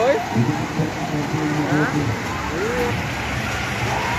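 A carousel plays music nearby.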